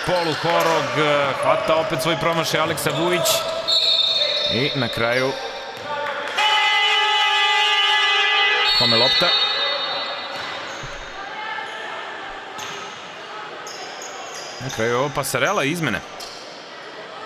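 Young players shout to each other across the court.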